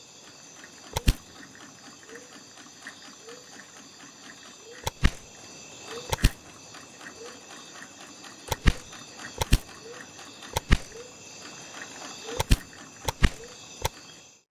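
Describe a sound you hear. Short, sharp clicks sound now and then.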